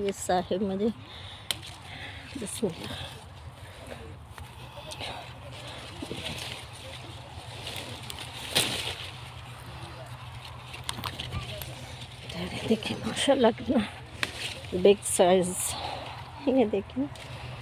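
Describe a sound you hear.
Leaves rustle as a hand pushes through a branch.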